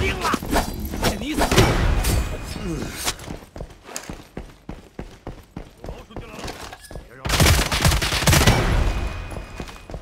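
Gunfire rings out in loud rapid bursts.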